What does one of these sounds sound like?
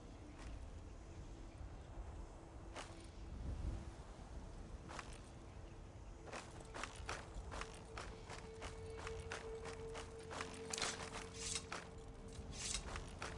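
Footsteps crunch over stony ground.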